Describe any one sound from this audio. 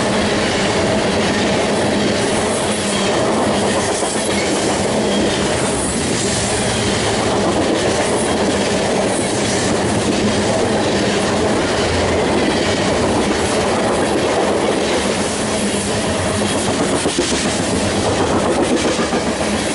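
Steel wheels squeal and click over rail joints.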